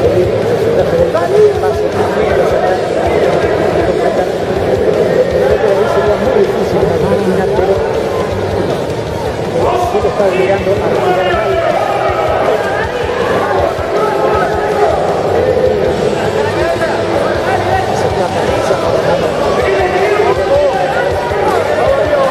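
A large crowd shouts and cheers loudly throughout.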